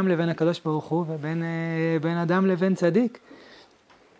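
A man chants a reading aloud in a sustained, melodic voice, close to the microphone.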